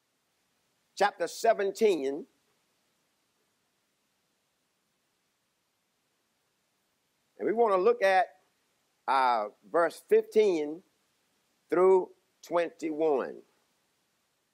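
A man speaks calmly into a microphone in short phrases, with long pauses.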